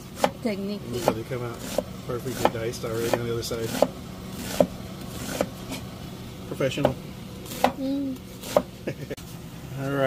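A knife chops quickly on a wooden board.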